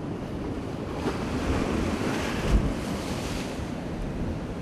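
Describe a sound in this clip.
Wind gusts across the microphone.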